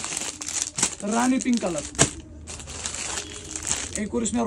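Plastic packaging crinkles and rustles.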